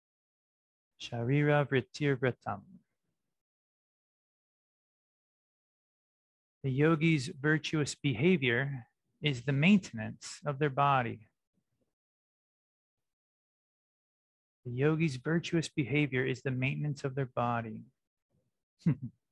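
A young man speaks calmly and clearly into a close microphone, with long pauses.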